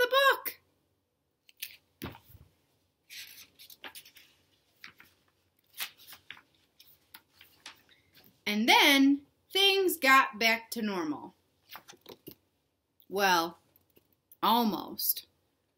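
A young woman reads aloud close by, in a lively voice.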